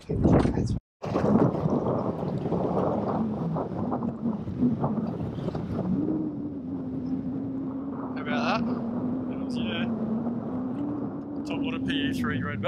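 Wind blows steadily across open water.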